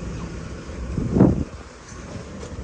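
A van's sliding door slams shut with a heavy thud.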